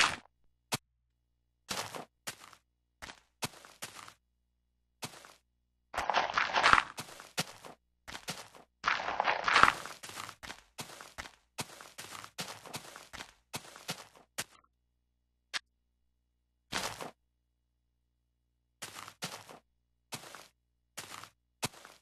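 Dirt blocks are placed in a video game with short crunching thuds.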